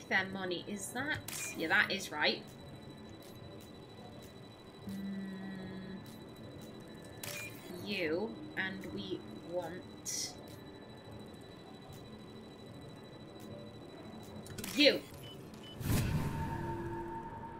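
Electronic beeps and chimes sound in quick bursts.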